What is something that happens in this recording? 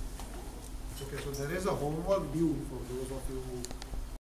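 A man speaks aloud, addressing a room.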